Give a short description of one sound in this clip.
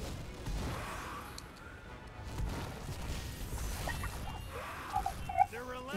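A fiery blast whooshes and crackles.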